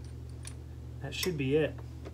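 A ratchet wrench clicks.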